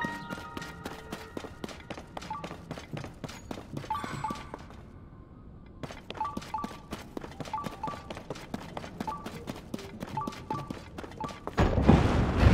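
Footsteps tread quickly and steadily over hard ground.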